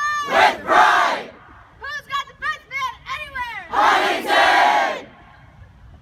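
A group of teenagers shouts together loudly outdoors.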